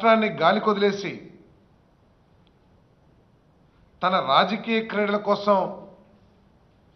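A middle-aged man speaks forcefully into a microphone, in short bursts with pauses.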